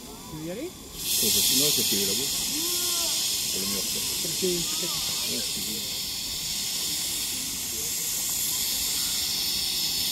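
A steam locomotive loudly blows off a rushing hiss of steam.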